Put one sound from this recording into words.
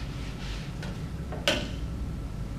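A marker clicks down onto a metal tray.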